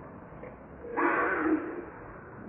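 A monkey screeches.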